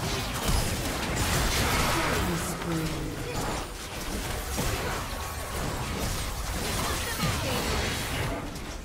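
Spell effects whoosh and burst in a game battle.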